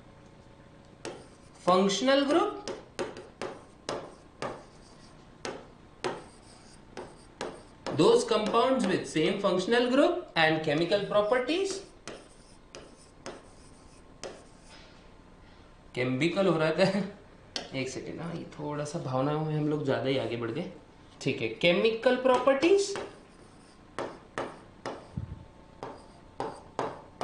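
A pen taps and scrapes on a board.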